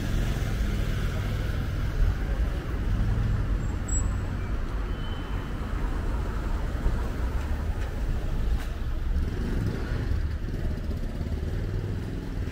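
Traffic rumbles steadily along a street outdoors.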